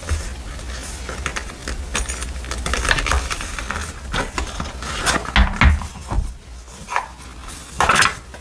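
A leather wallet's clasp clicks and its flaps rub.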